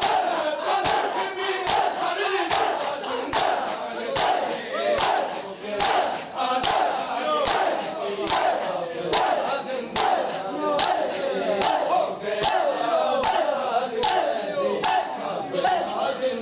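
A crowd of men beat their chests in a steady rhythm, slapping loudly.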